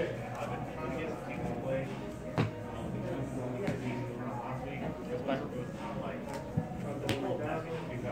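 Cards tap on a table.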